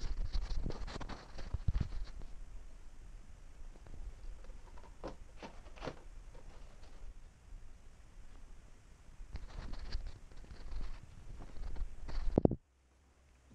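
A stiff plastic sheet rustles and wobbles as hands handle it.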